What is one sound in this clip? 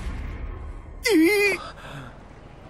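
A young man exclaims in surprise.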